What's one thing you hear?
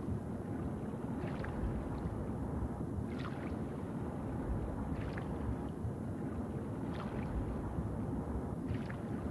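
Deep water rumbles in a low, steady drone.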